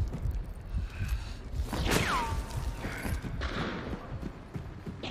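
Footsteps thump heavily on a wooden floor.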